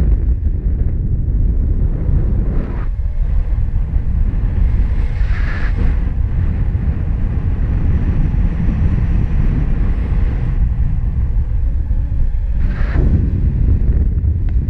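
Strong wind rushes and buffets steadily against a microphone outdoors.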